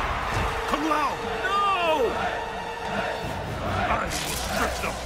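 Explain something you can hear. A man with a deep voice bellows loudly.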